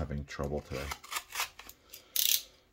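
Scissors snip through thin cardboard.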